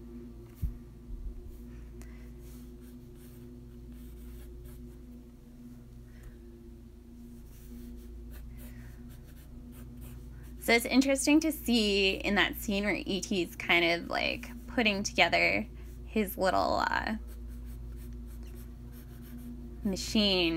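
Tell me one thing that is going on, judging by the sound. A pencil scratches and scrapes across paper.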